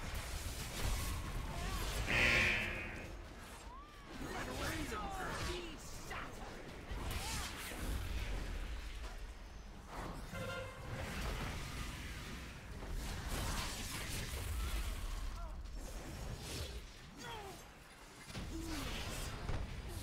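Blows land with heavy thuds.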